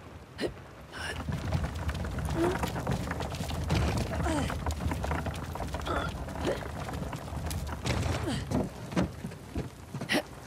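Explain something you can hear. A wooden crate scrapes as it is pushed over the ground.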